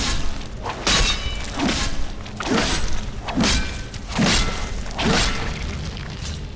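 Heavy blows strike a giant spider again and again.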